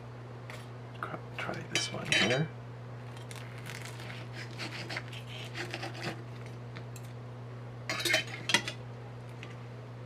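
A knife and fork scrape and clink against a ceramic plate.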